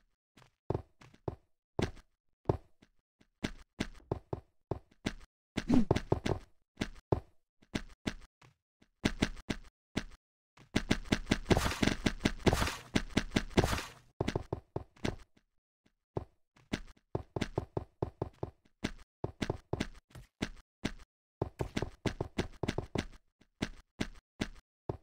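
Game blocks are placed with quick, soft clicks.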